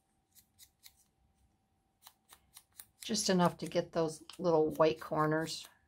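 A small ink pad taps lightly on paper.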